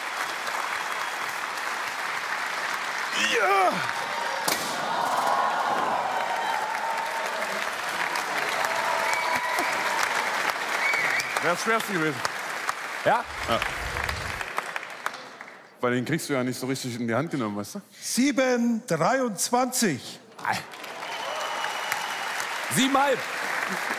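A large audience murmurs and cheers in a big echoing hall.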